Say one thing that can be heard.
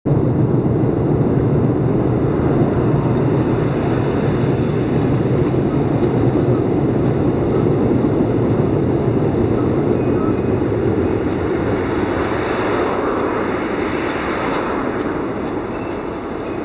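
Traffic rumbles steadily nearby.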